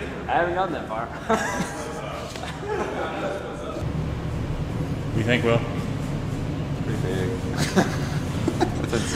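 Young men talk casually nearby in an echoing hall.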